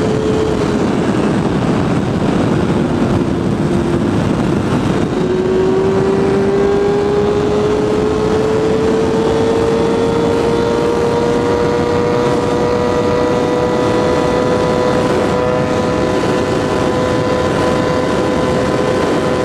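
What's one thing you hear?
Wind roars heavily past the rider.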